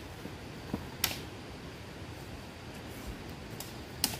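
Uprooted plants drop into a plastic basket with soft thuds.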